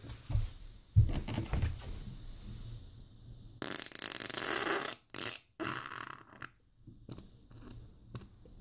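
Clothing rustles close by.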